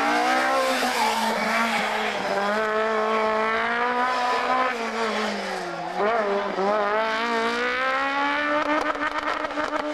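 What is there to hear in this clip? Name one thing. A car engine roars and revs up and down close by.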